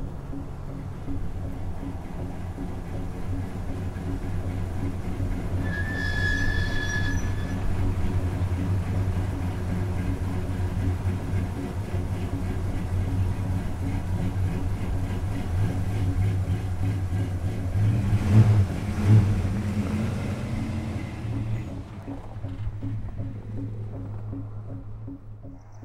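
A vehicle engine idles with a low, steady rumble, then drives away.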